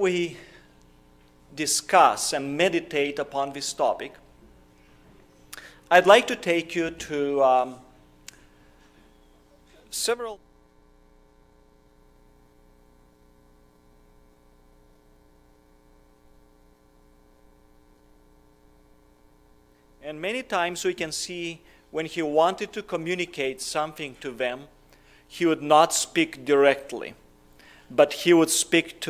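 A man speaks calmly into a microphone, with pauses, in a room that echoes slightly.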